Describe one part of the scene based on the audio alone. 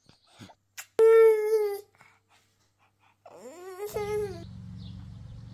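A young child cries loudly close by.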